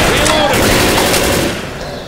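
A rifle clicks as it is reloaded.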